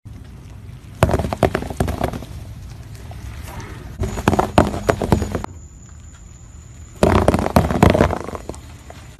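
Balls burst with sharp pops under a car tyre.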